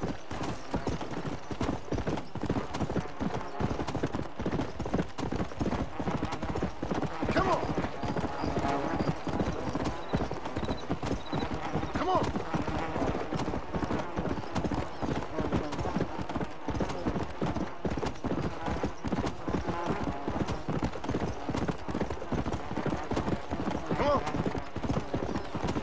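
Horse hooves gallop steadily on dry ground.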